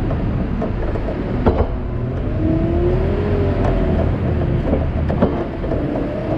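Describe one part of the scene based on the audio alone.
Grain shifts and knocks against a metal grab.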